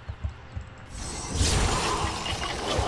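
Magic spells crackle and burst in a fast fight.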